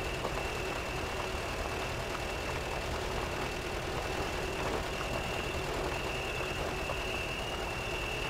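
An off-road vehicle's engine rumbles steadily as it crawls over rough ground.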